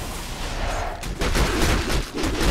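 Game spell effects crackle and burst during a battle.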